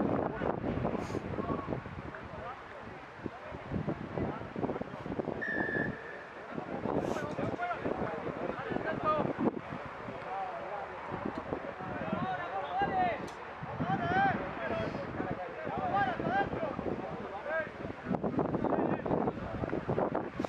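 Players shout and call out across an open field outdoors.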